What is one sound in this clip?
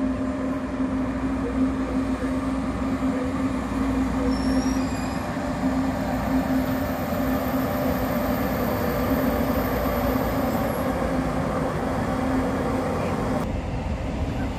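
A high-speed train approaches with a steady electric hum and rumble.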